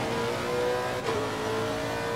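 A race car gearbox shifts up with a sharp clunk.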